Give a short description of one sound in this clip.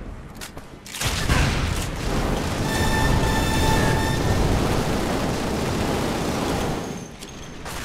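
Guns fire in rapid loud bursts.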